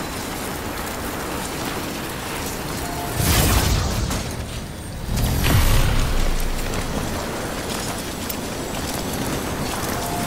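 Boots crunch over loose rocky ground.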